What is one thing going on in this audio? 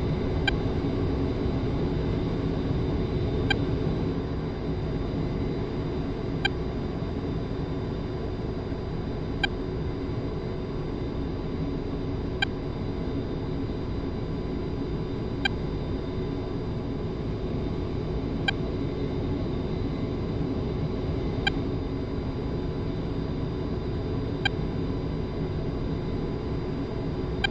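A jet engine roars steadily inside a cockpit.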